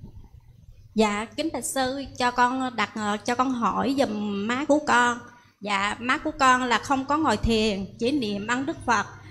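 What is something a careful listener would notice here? A young woman speaks calmly into a microphone, heard through a loudspeaker in a large room.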